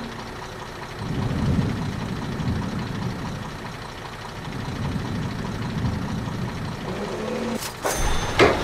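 Heavy truck engines rumble low and steadily.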